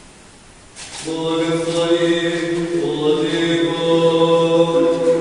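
A man chants loudly and steadily in a reverberant hall.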